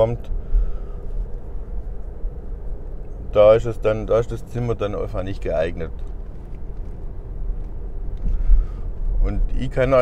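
A car engine hums low and steadily while driving.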